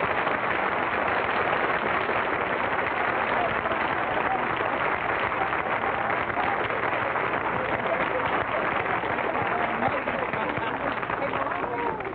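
A large audience applauds and cheers loudly in a hall.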